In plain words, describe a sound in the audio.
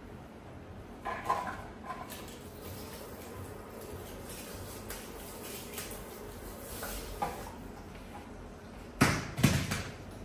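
A hand shower knocks and clatters against a basin.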